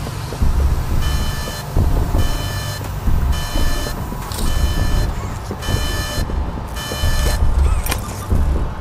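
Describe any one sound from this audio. An electronic alarm beeps in short, repeated bursts.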